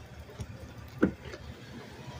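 A car door handle clicks open.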